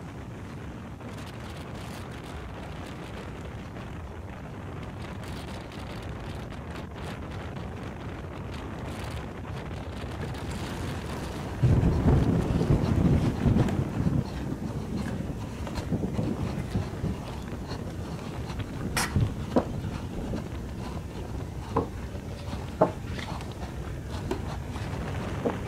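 Stiff cardboard rustles and scrapes as it is rocked back and forth.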